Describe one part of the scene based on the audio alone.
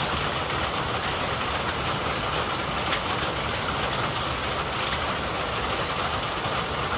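Rain patters on leaves and a roof nearby.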